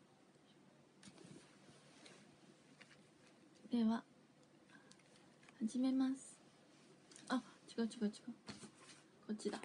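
A young woman speaks softly and casually, close to a microphone.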